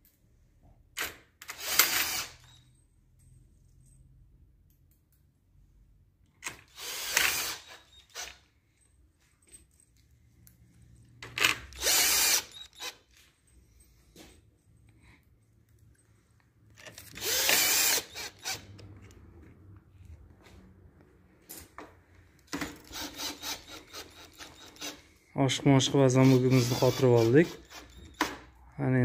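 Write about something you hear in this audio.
A cordless drill whirs in short bursts, driving screws.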